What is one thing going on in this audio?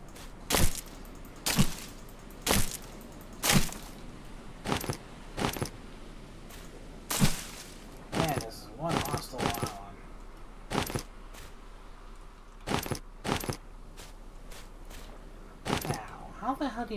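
Footsteps crunch on dry leaves and grass at a steady walking pace.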